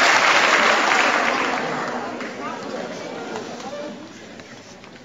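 An audience applauds loudly in a large hall, then the applause fades.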